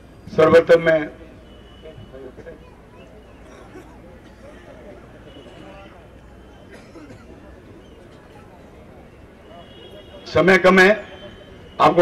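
A middle-aged man speaks forcefully into a microphone through loudspeakers, in bursts with pauses.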